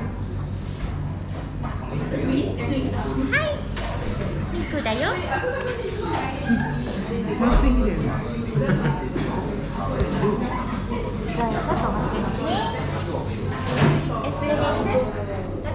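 Young women and men chat quietly in the background.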